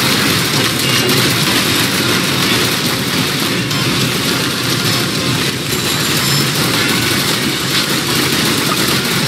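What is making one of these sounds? Laser guns fire in rapid, buzzing zaps.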